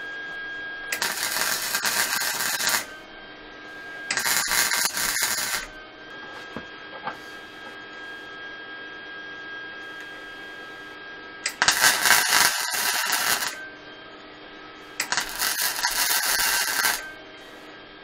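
An electric welder crackles and sizzles in short loud bursts.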